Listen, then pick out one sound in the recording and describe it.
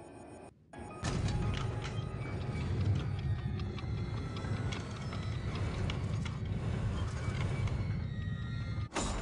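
A heavy stone mechanism grinds and rumbles as it turns.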